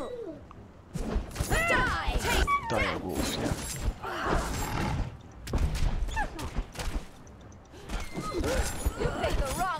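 Blades clang and slash in a fight.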